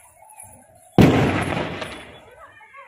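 A firecracker bangs loudly close by.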